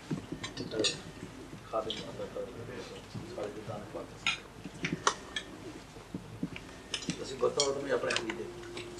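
Cutlery and plates clink as a group eats.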